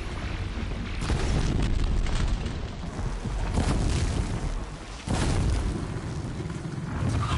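Fire bursts with loud roaring blasts.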